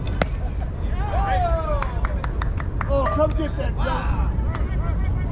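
Young men call out from across the field.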